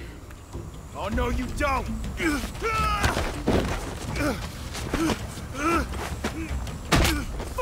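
A man speaks in a low, menacing voice close by.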